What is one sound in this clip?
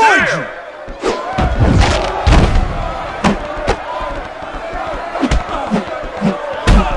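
Punches and body slams thud in a video game fight.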